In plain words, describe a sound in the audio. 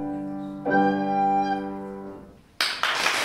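A girl plays a held note on a recorder in a room.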